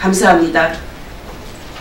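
An elderly woman speaks into a microphone.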